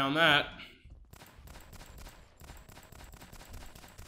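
Gunshots ring out from a pistol.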